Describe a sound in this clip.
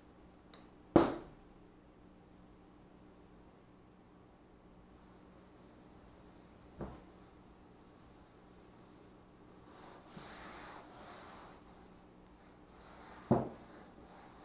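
A foam sheet thumps down onto a table.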